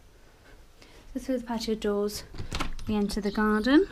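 A door opens with a click.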